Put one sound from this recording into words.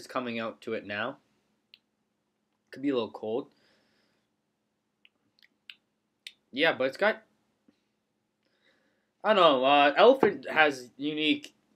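A young man talks casually and close up, in short bursts with pauses.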